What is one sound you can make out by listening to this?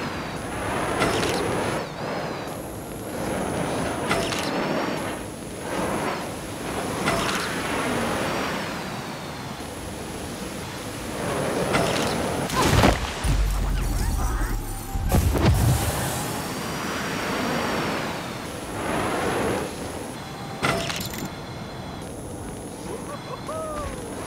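Wind rushes past loudly in surging gusts.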